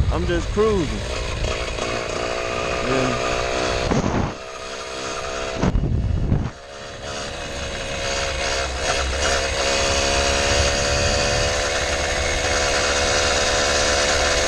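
Tyres roll and hum steadily on a paved road.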